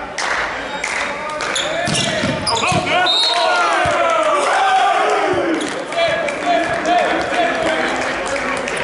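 Men shout and call out loudly across an echoing hall.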